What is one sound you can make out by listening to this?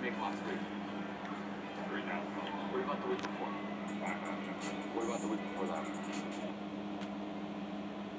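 Video game sound effects chime and chirp from a television speaker.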